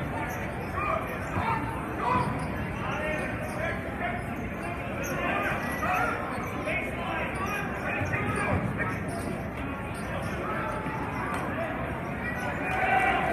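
A crowd murmurs and chatters in a large echoing gym.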